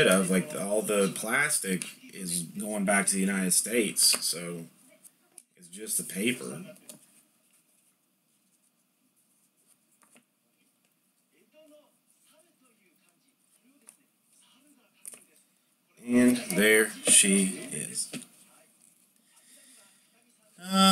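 Cards flick and rustle as they are shuffled through by hand.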